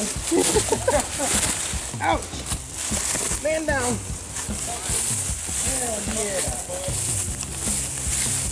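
Footsteps crunch through grass and leaves.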